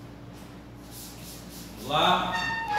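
A spray bottle hisses in short bursts.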